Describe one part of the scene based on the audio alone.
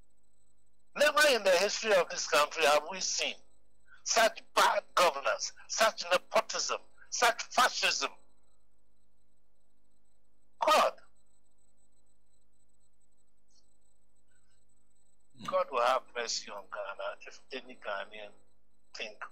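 A man speaks with animation, heard over a phone line.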